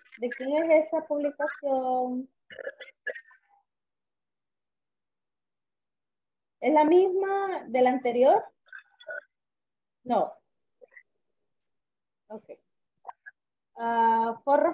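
A woman speaks calmly through an online call, in short bursts with pauses.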